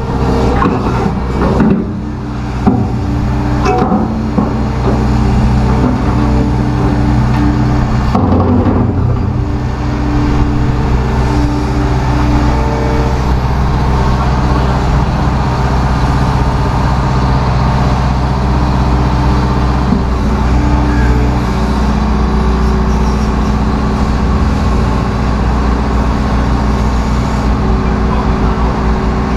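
A large excavator engine rumbles steadily nearby.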